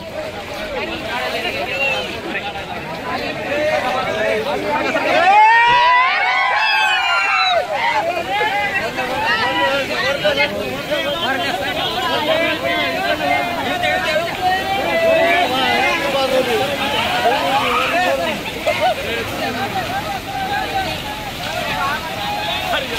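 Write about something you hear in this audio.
A crowd of men talk and shout excitedly outdoors.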